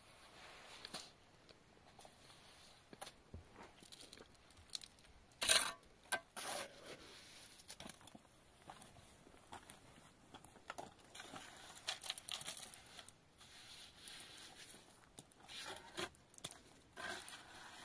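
A trowel scrapes wet cement on a rough surface.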